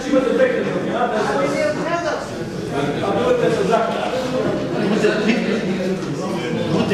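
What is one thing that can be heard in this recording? A man speaks nearby with animation.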